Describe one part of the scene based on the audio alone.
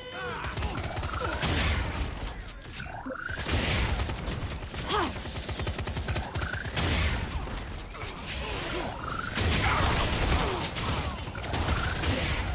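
An energy gun fires with crackling electric zaps.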